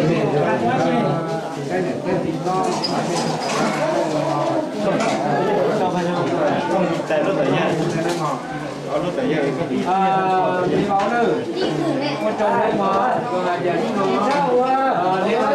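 A man speaks loudly nearby to a gathered group.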